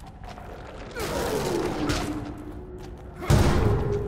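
A monster growls and snarls close by.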